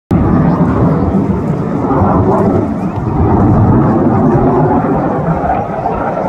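A jet plane roars loudly overhead.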